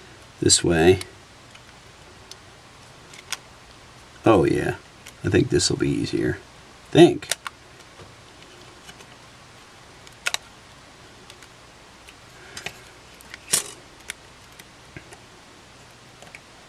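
Small parts click and tap softly as they are handled.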